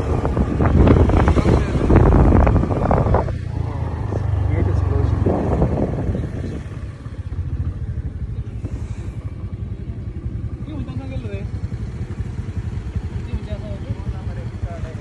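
A motorbike engine hums steadily up close.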